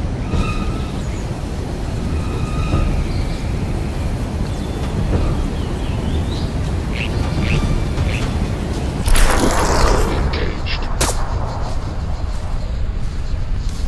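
Leaves and branches rustle as someone pushes through dense bushes.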